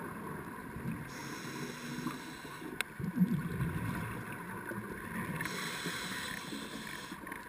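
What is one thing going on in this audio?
Water rumbles and swirls, heard muffled from underwater.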